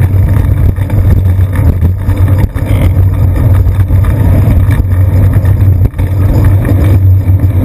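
Wind rumbles loudly across a microphone.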